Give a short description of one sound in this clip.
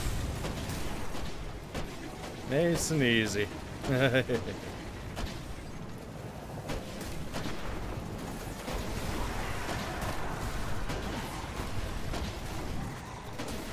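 A vehicle engine roars in a video game.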